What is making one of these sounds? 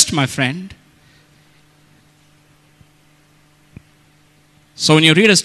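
A middle-aged man preaches with emphasis into a microphone.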